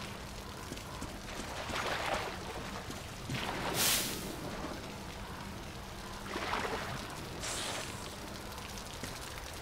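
A young woman talks quietly close to a microphone.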